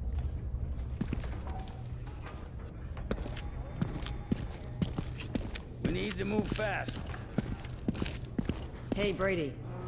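Footsteps thud on a hard floor and wooden stairs.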